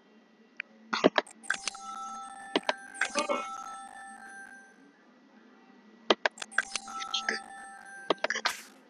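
A bright chime rings as an item is found in a computer game.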